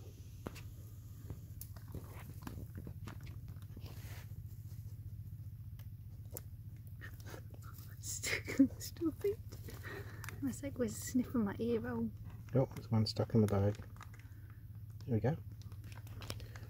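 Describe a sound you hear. Water sloshes gently as a plastic bag is dipped in.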